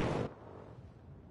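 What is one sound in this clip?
A jet fighter roars past.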